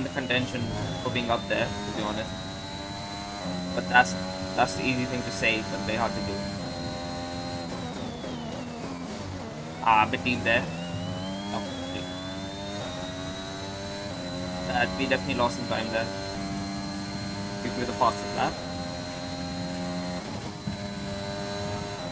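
A racing car engine screams at high revs, rising in pitch and dropping as it slows for corners.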